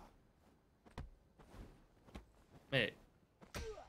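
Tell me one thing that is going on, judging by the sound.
Punches thud in a game fight.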